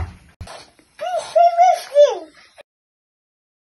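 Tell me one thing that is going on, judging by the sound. A small child speaks in a high voice close by.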